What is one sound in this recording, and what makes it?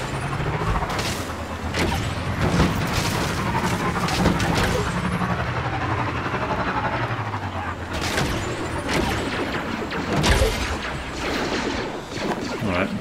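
A hover bike engine hums steadily, then stops.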